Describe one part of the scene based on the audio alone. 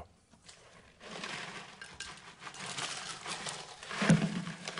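Crackers rustle and clink in a glass jar.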